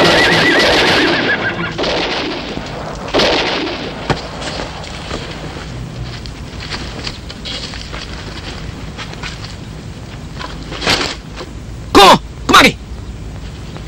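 A man speaks sternly and loudly, close by.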